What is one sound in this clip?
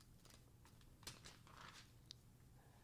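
Paper rustles softly as pages are handled.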